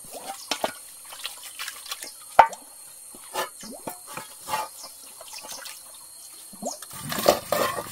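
A boy scrubs a clay jar by hand, with light knocks and clinks.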